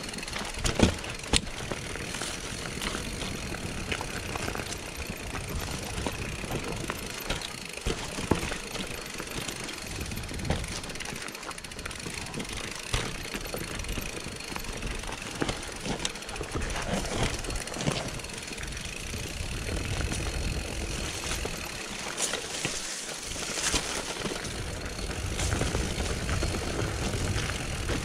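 Mountain bike tyres roll and crunch over a dirt trail.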